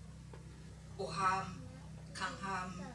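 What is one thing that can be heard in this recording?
An elderly woman speaks slowly into a microphone over a loudspeaker.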